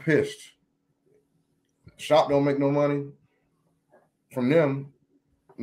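A man speaks close to a microphone in short, drawn-out phrases.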